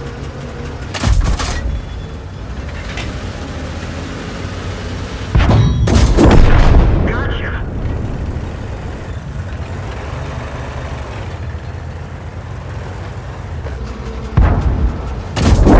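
Tank guns fire with loud booming blasts.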